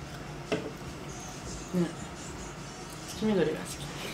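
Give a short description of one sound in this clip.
A young woman slurps noodles close by.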